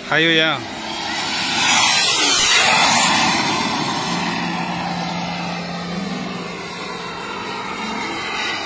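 A jet plane roars overhead, its pitch falling as it sweeps past.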